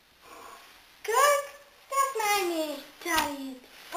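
A squeaky rubber toy is squeezed and squeaks loudly several times, each squeak sliding down in pitch.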